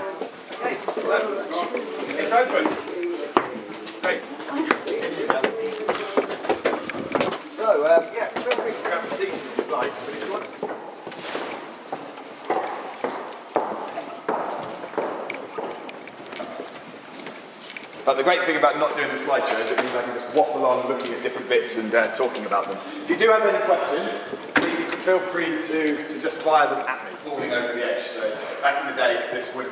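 A crowd of men and women chatter nearby in a large echoing room.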